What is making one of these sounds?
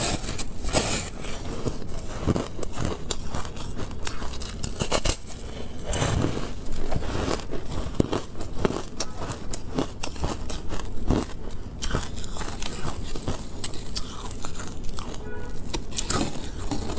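Fragments of ice clink and rattle as they fall into a plastic tray.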